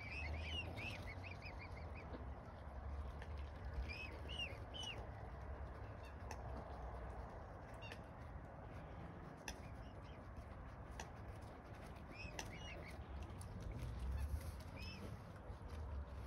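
Wind blows across a microphone outdoors.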